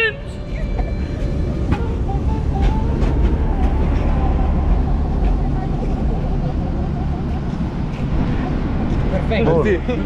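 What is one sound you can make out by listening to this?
A tram rumbles and rattles past on its rails.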